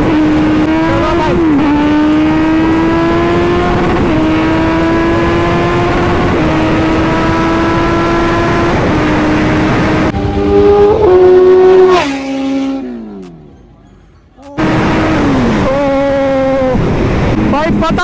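A motorcycle engine roars at speed, climbing in pitch and dropping with each gear change.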